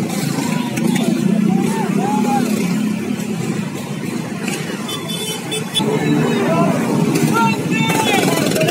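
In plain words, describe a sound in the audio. Motorbike and scooter engines hum and rumble close by.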